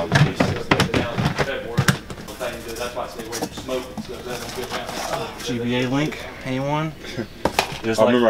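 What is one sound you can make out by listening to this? Items rattle in cardboard boxes as they are rummaged through.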